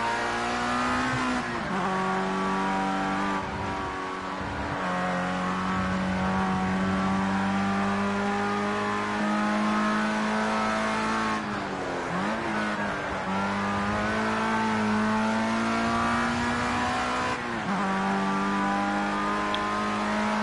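A racing car engine roars steadily, rising in pitch and dropping briefly as gears shift and the car brakes for corners.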